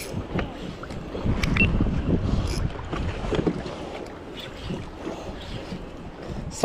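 Water laps against the boat's hull.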